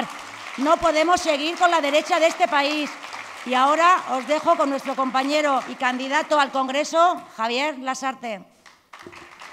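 A woman speaks clearly into a microphone at a steady pace.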